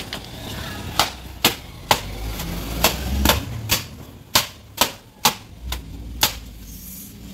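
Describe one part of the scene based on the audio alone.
A wet cloth is shaken out with sharp snapping slaps.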